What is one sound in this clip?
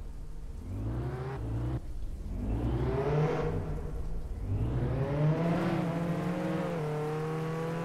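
A truck engine revs up several times.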